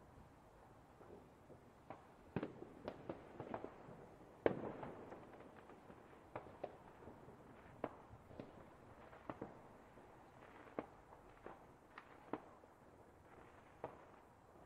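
Fireworks burst and crackle in the distance at irregular intervals.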